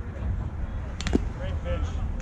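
A metal bat cracks against a baseball.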